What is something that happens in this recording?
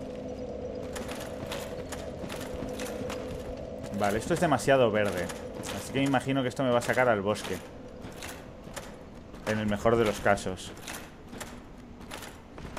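Armoured footsteps clank on rocky ground.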